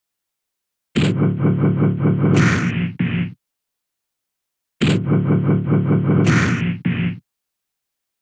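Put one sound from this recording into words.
Cartoon punches and slaps land rapidly in a video game fight.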